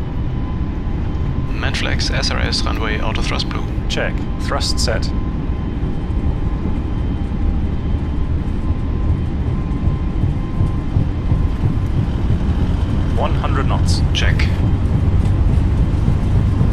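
Jet engines roar in a low, steady rumble that slowly grows louder.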